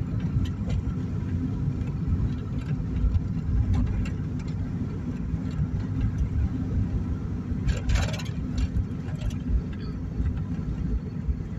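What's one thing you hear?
A car's engine and tyres rumble on asphalt, heard from inside the car.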